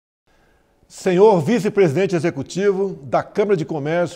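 A middle-aged man speaks formally and steadily into a microphone.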